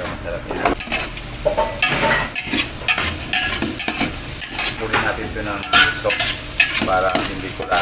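Meat sizzles in a hot pot.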